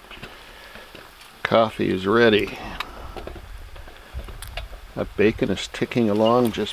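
Bacon sizzles in a pan over a fire.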